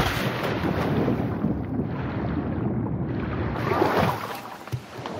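Water rushes and bubbles in a muffled, underwater way.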